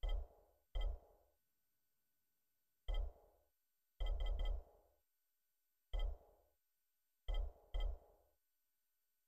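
Short menu clicks sound each time a selection moves.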